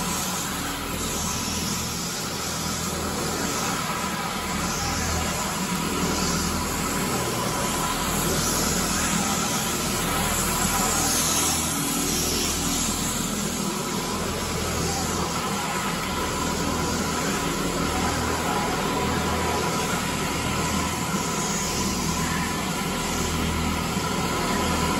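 Brushes scrub and swish against a wet floor.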